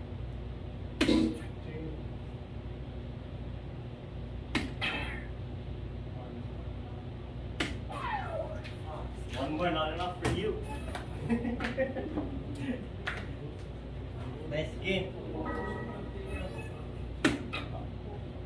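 Darts thud into a board one at a time.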